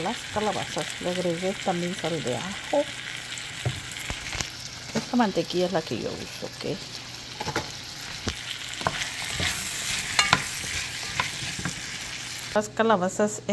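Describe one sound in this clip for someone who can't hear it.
Vegetables sizzle softly in a hot pan.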